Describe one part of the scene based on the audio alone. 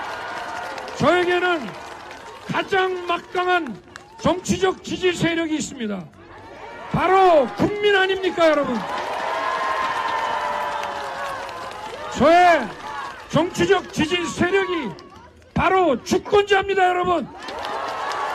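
A man speaks forcefully into a microphone over loudspeakers outdoors.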